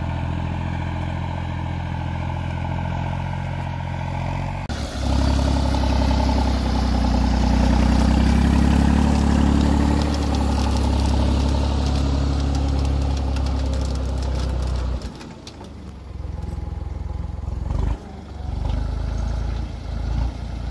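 Disc blades scrape and crunch through soil.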